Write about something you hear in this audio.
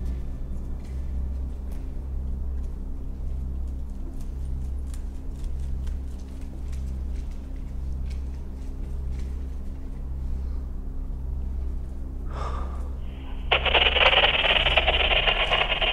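Footsteps scuff slowly across a hard floor.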